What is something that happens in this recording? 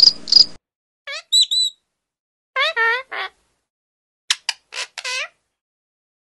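A parrot squawks loudly in short bursts.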